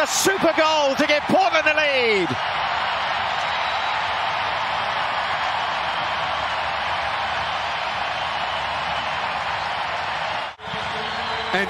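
A large crowd cheers and roars loudly in a stadium.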